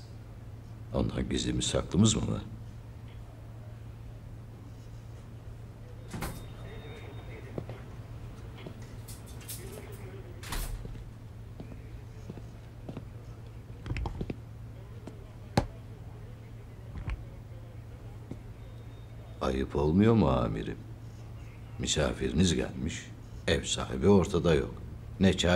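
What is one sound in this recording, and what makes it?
An elderly man speaks in a low, firm voice.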